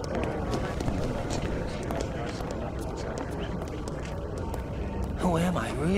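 Many footsteps shuffle past on a hard street.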